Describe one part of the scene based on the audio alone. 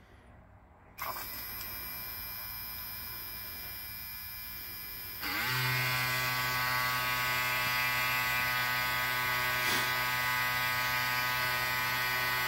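A small electric motor starts up and hums steadily, then grows louder and higher.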